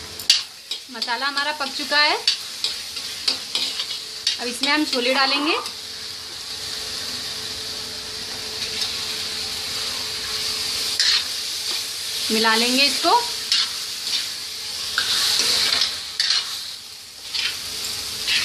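A metal spoon scrapes and clatters against a pan.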